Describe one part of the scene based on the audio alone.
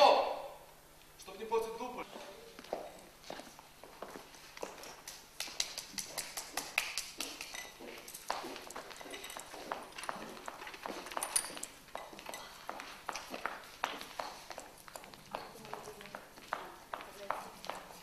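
High heels tap on a wooden floor.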